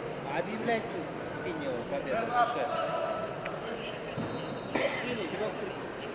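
A crowd chatters and calls out throughout a large echoing arena.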